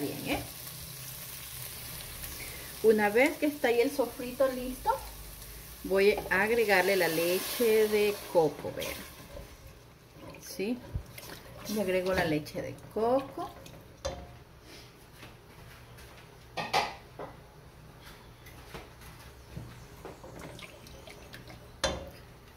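A spatula scrapes and knocks against a metal pot.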